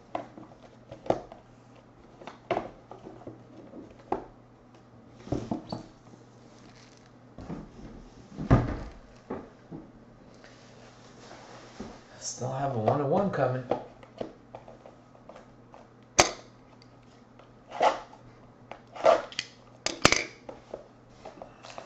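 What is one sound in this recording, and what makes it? Plastic card packs knock and tap against a hard surface.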